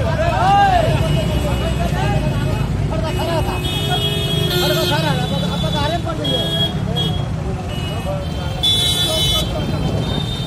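Motorbike engines rumble nearby in a busy street.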